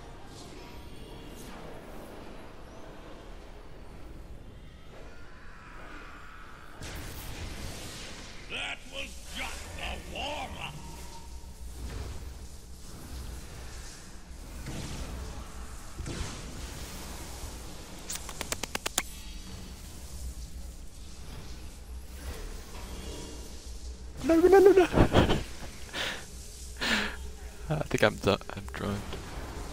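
Spell blasts and magic effects crackle and boom in a game battle.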